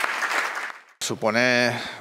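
A man speaks calmly into a microphone close by.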